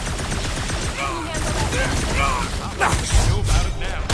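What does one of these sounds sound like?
Heavy blows thump in a fight.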